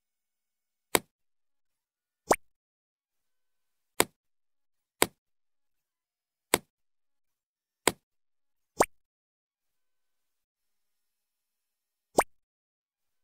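Short game clicks pop as items drop into place.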